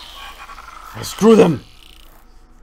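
A man groans loudly close to a microphone.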